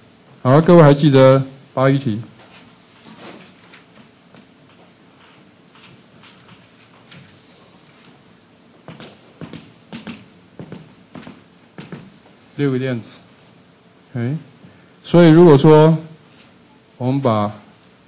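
A middle-aged man speaks through a microphone in bursts, with pauses.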